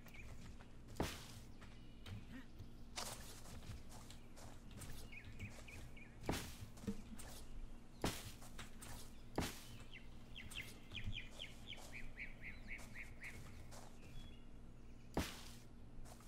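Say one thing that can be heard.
Thatch walls crunch and rustle sharply as they are torn down, one after another.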